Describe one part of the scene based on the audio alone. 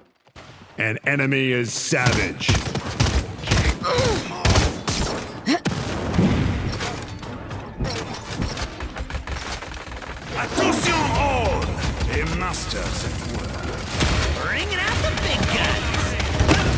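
Gunfire from a video game rifle crackles in rapid bursts.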